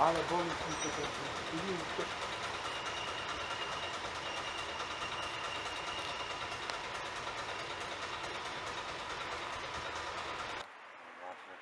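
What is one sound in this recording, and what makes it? A train rumbles along the tracks as it pulls away.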